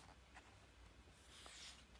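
A hand slides and brushes across paper pages.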